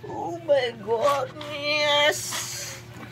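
A young man speaks in a lively, sing-song voice close by.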